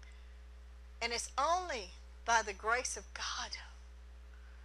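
An older woman speaks slowly and emphatically into a microphone.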